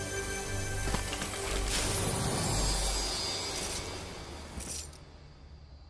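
A treasure chest rings and shimmers as it opens.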